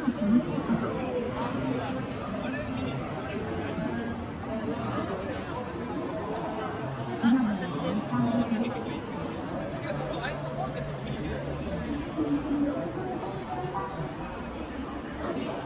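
A busy crowd of people chatters nearby outdoors.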